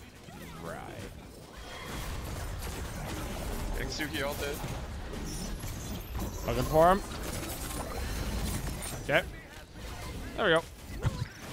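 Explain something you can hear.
Game effects whoosh and clash throughout.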